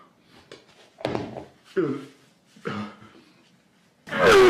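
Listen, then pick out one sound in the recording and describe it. A man sobs and sniffles.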